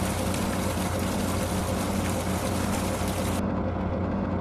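Water hisses as it sprays from a hose.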